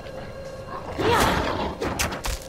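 A beast snarls loudly.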